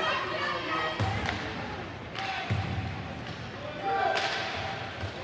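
A hockey stick clacks against a puck.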